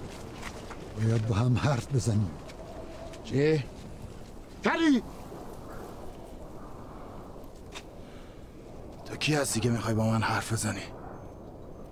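A man speaks sternly, close by.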